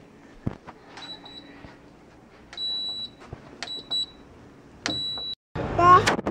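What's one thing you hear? A machine beeps in short high tones as its buttons are pressed.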